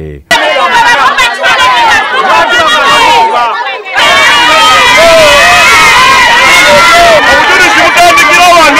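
A crowd of people talk and shout over one another outdoors.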